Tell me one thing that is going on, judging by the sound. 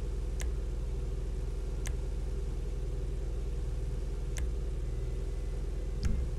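A menu gives short, soft clicks as the selection changes.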